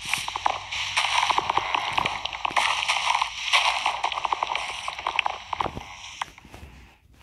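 Leaves crunch and rustle as they are broken, over and over.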